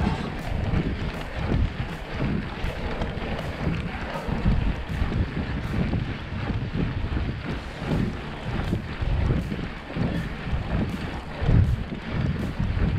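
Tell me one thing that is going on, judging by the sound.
Wind rushes loudly and gustily past.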